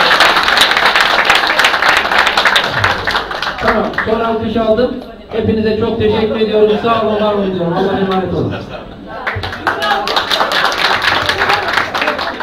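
A crowd claps rhythmically in a room.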